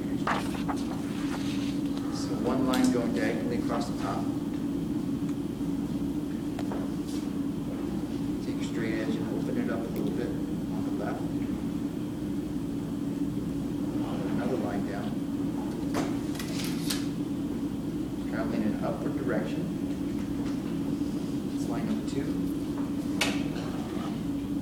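A projector hums steadily.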